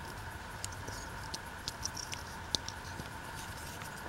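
A folding knife snaps shut.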